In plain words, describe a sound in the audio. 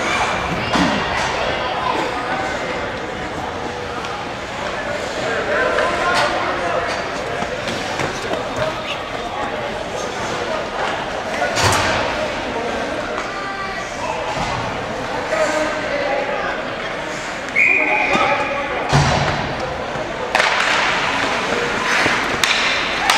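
Hockey sticks clack against the ice and each other.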